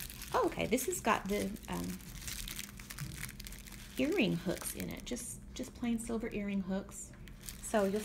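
Tissue paper rustles as it is unfolded.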